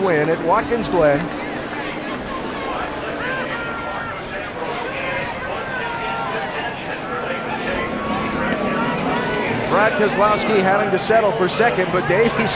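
A large crowd cheers in the distance.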